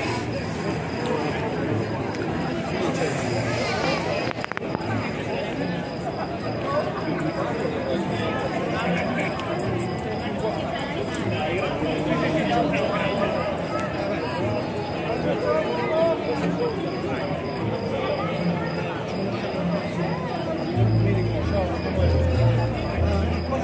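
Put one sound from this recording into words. A large crowd chatters and murmurs close by, outdoors.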